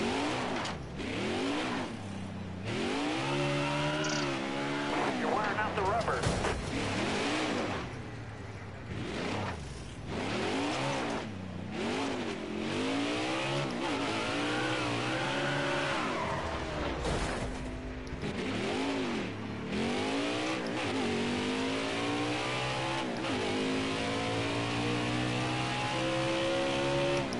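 A V8 stock car engine revs up and down through the gears.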